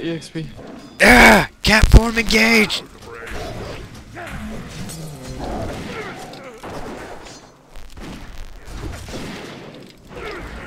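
Blows and clashing weapons ring out in a fight.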